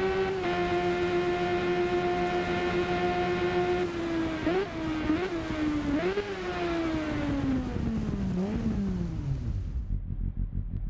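A motorcycle engine roars steadily at high speed, then winds down through the gears.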